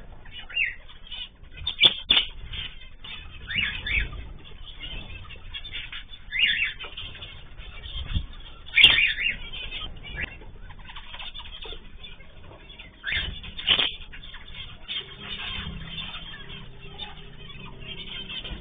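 Small parrots chirp and squawk sharply.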